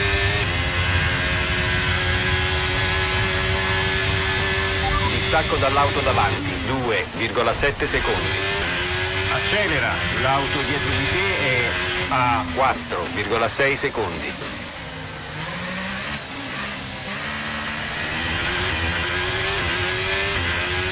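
A racing car engine screams at high revs and drops in pitch with each downshift.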